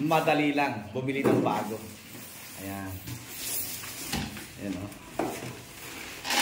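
Styrofoam squeaks and rubs against cardboard.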